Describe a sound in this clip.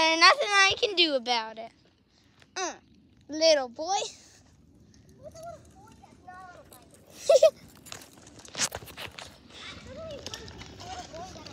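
Small bicycle tyres roll over pavement outdoors.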